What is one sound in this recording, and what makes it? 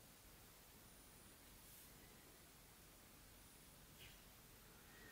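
A fingertip taps lightly on a phone's touchscreen.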